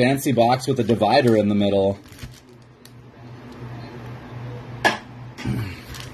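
Foil packs slide out and drop onto a table.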